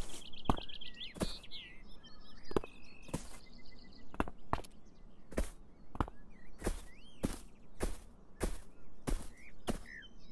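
Footsteps patter steadily across grass.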